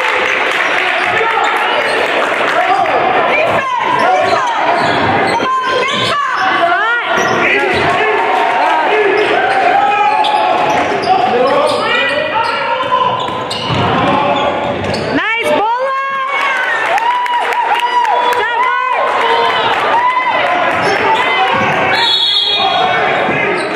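A basketball bounces on the court with echoing thuds.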